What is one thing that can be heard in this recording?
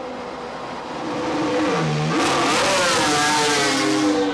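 A racing car engine revs loudly close by.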